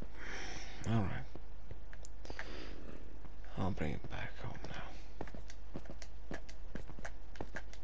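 Footsteps tap steadily on hard ground.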